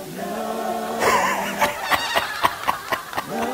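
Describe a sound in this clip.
A man bursts into loud, breathy laughter close by.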